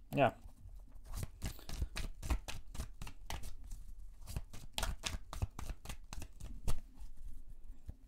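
Cards slap and riffle as a deck is shuffled.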